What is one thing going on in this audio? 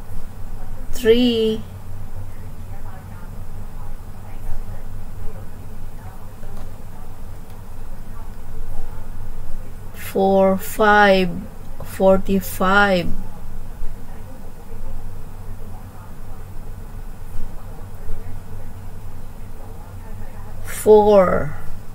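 A middle-aged man speaks in short bursts through a computer microphone.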